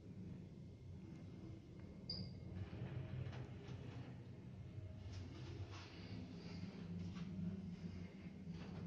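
An elevator car hums and rumbles steadily as it travels down.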